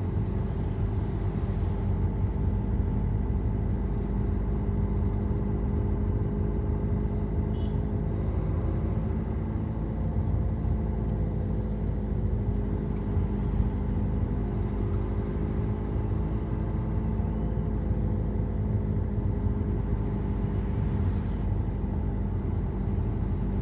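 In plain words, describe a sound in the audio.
A car engine hums steadily from inside the car as it drives along a street.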